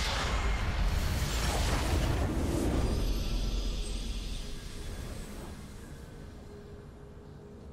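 A triumphant victory fanfare plays and slowly fades.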